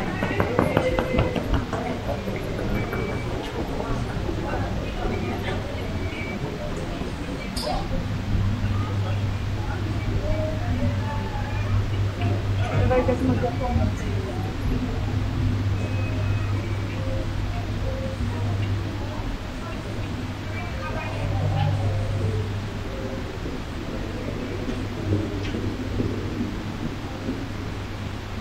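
A crowd of travellers murmurs in a large echoing hall.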